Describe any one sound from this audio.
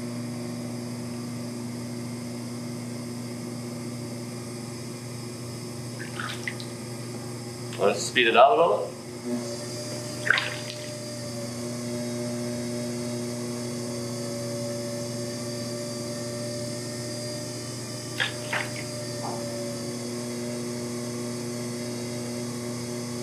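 Wet clay squelches under hands.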